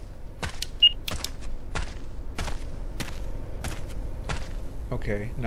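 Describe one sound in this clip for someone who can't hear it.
Footsteps crunch steadily over soft ground.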